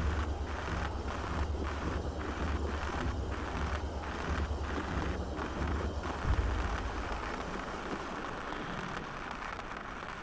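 A cutting torch hisses underwater.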